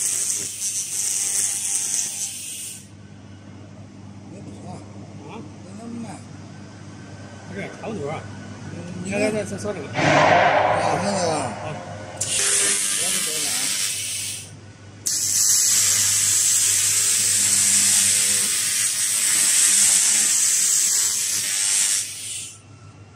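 A laser tool hisses loudly against metal in steady bursts.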